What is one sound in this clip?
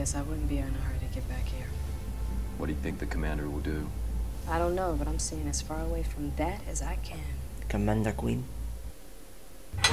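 A woman speaks quietly and calmly nearby.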